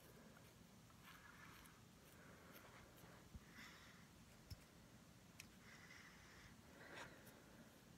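A razor scrapes across stubble in short, raspy strokes.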